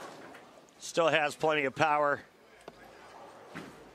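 Bowling pins crash and scatter.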